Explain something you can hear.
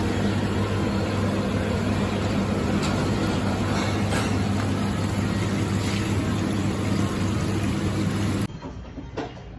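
Water bubbles and churns loudly from an aerator in a tank.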